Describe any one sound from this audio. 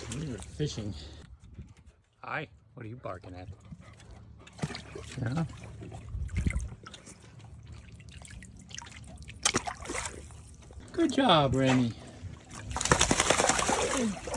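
A dog paddles and splashes through shallow water.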